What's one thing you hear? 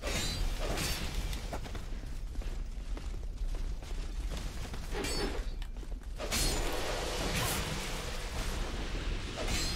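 Fire bursts with a roaring whoosh.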